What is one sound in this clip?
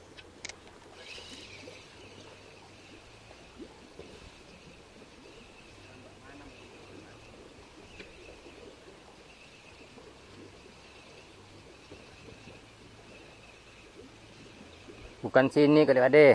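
A spinning reel is wound in, whirring softly.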